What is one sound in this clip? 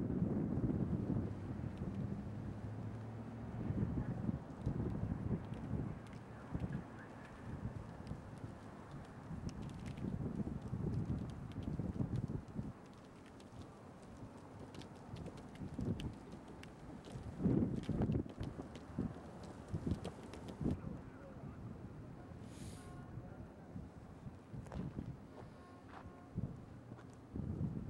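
Traffic rumbles low and steadily on a nearby road.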